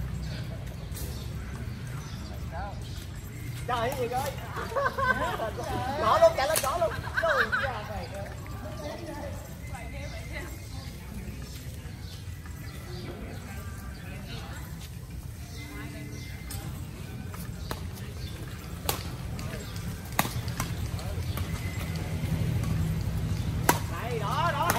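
A badminton racket hits a shuttlecock outdoors.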